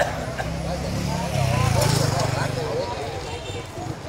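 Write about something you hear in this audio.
A motorbike engine passes close by.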